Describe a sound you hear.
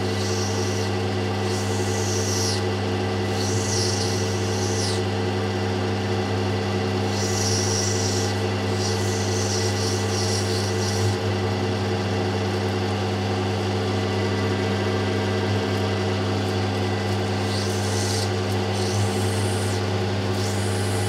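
A stone hisses against a spinning wheel in short bursts.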